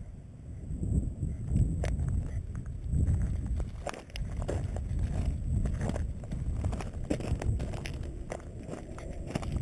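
Wind rumbles across an open hillside.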